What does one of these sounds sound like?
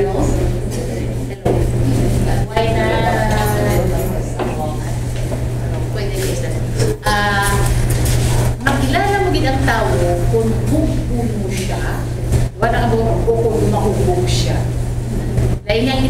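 A middle-aged woman speaks with animation through a microphone in an echoing room.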